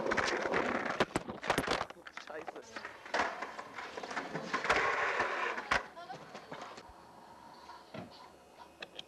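A skateboard deck clacks against the ground.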